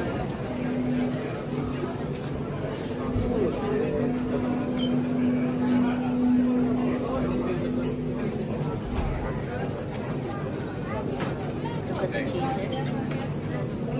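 A crowd of people chatters in a busy indoor space.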